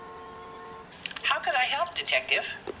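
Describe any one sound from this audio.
A woman answers through a telephone earpiece.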